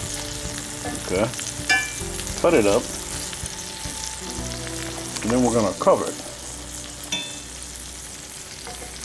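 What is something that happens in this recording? Sausages sizzle in hot fat in a cast iron skillet.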